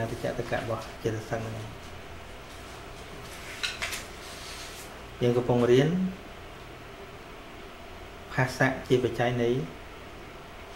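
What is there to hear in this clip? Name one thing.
A middle-aged man speaks calmly in short phrases through a microphone, with pauses between them.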